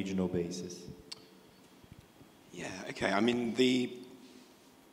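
A man speaks calmly into a microphone over a loudspeaker system in a large room.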